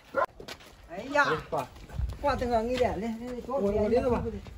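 A young man talks nearby.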